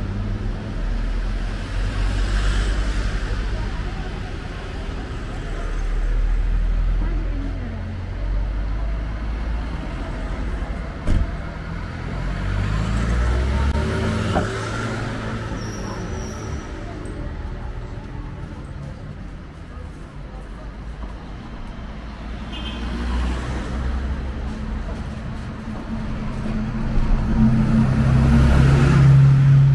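Car engines hum and tyres roll along a street.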